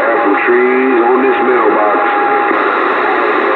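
Warbling, whistling tones come through a radio's static and then stop.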